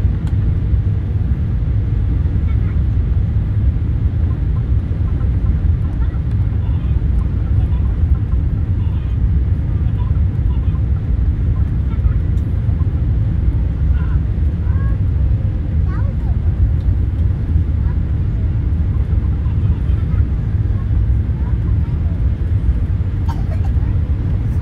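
A jet engine roars with a steady low rumble inside the cabin.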